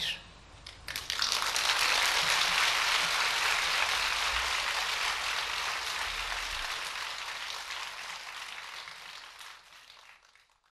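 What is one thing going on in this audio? An audience applauds and slowly fades.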